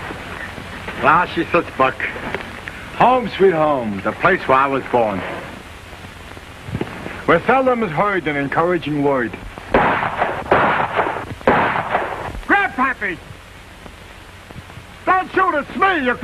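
A man talks calmly, heard close by.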